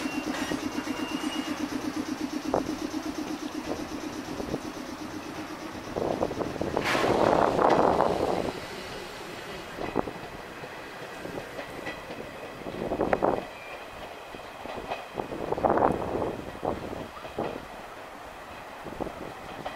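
An electric train rolls along the tracks.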